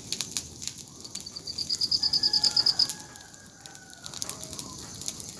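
A bonfire crackles and pops.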